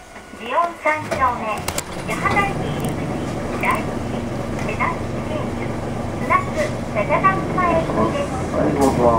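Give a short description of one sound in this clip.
A car engine idles nearby with a low steady rumble.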